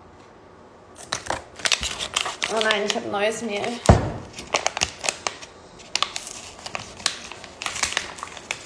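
A paper bag crinkles and rustles.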